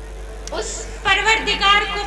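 A young woman sings loudly through a microphone and loudspeakers.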